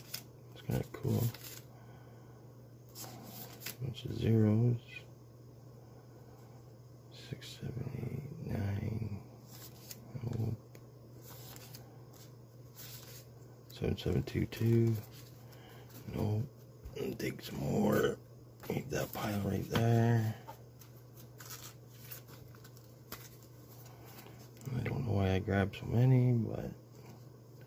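Plastic banknotes crinkle and rustle.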